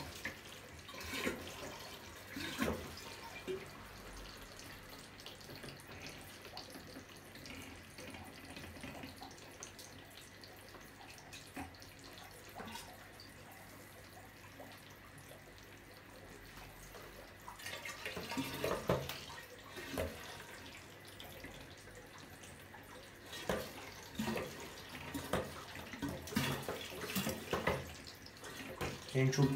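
Water splashes and sloshes as a hand moves around in a fish tank.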